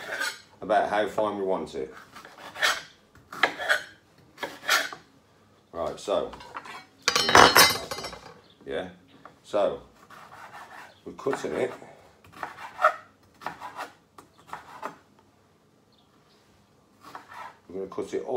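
A knife chops fruit on a cutting board.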